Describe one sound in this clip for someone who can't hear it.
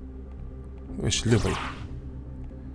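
A robot's weapon fires with a short blast.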